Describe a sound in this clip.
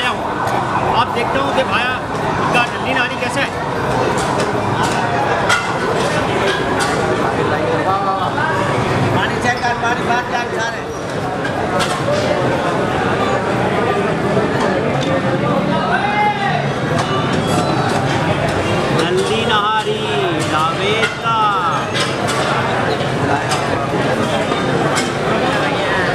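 A crowd chatters in the background of an echoing hall.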